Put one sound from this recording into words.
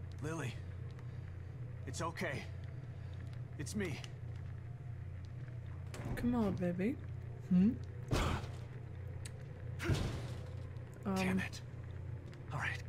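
A young woman speaks in short bursts close to a headset microphone.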